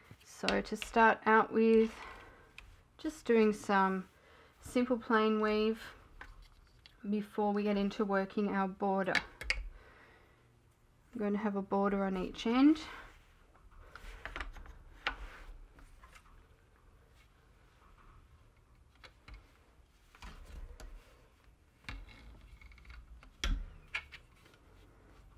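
Wooden loom parts knock and clack now and then.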